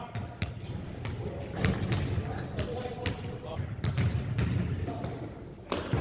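Basketballs clang off a metal rim.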